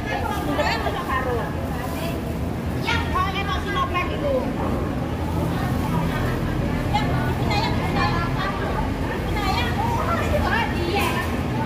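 Young women talk and chatter nearby with animation.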